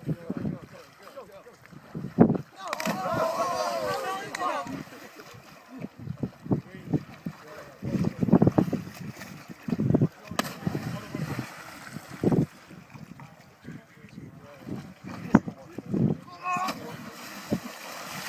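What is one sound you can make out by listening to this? Bodies splash heavily into water.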